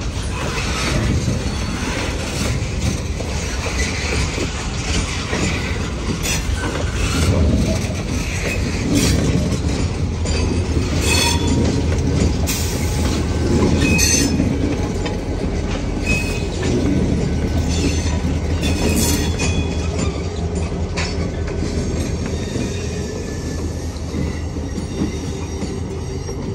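Freight train wheels rumble and clatter over the rails close by.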